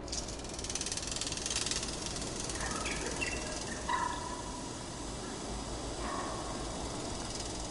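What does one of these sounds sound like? A metal pulley squeaks as it rolls along a cable.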